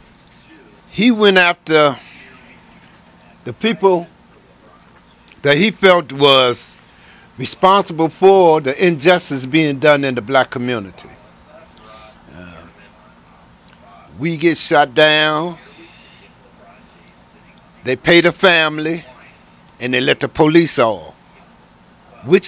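A middle-aged man speaks calmly into a microphone, close by, in short phrases with pauses.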